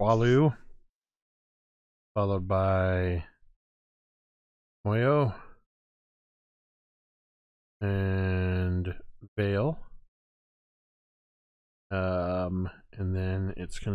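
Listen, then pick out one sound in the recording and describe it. A man speaks in an animated, theatrical voice over an online call, in short bursts with pauses.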